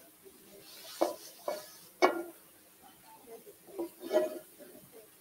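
Metal utensils clank against a pan.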